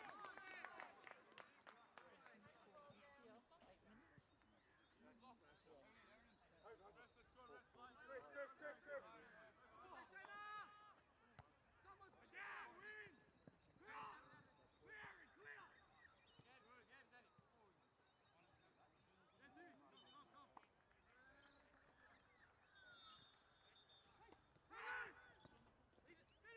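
Players shout and call to each other outdoors across an open field.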